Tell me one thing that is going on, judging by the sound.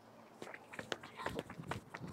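Running footsteps patter on a track.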